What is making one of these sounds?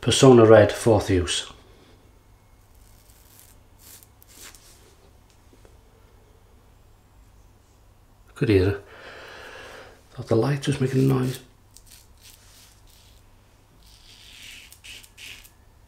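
A double-edge safety razor scrapes through lathered stubble.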